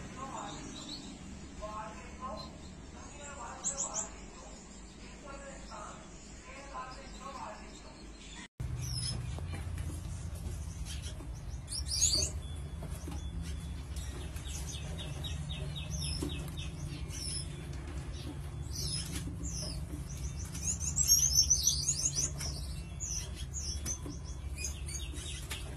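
Gouldian finches give short, high chirps.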